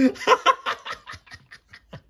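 An elderly man laughs close by.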